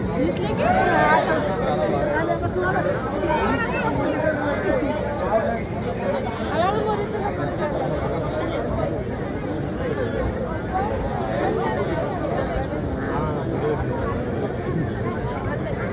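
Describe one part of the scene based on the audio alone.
A dense crowd of men and women chatters loudly all around, close by.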